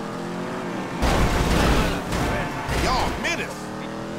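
A car crashes and scrapes against another vehicle.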